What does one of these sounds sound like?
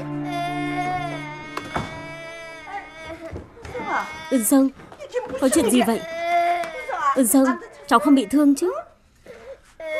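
A middle-aged woman shouts and wails loudly.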